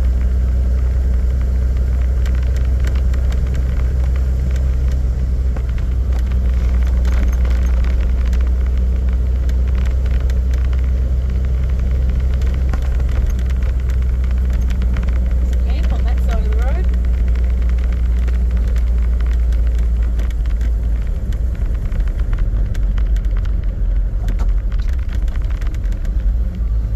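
Tyres crunch and rattle over a sandy dirt track.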